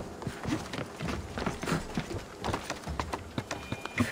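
Hands and feet knock against wooden scaffolding during a climb.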